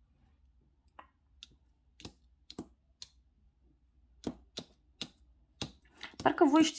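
Fingers tap and brush against stiff paper cards.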